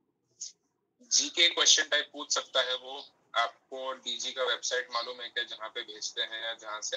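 A second man talks calmly over an online call.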